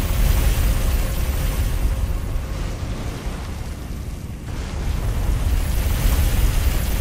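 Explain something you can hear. Molten lava rumbles with a deep, steady roar.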